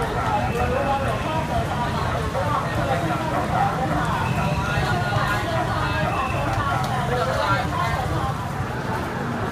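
A crowd of people chat.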